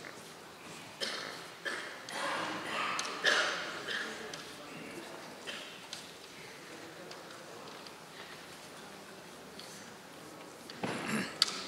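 A man shouts sharp kendo cries in an echoing hall.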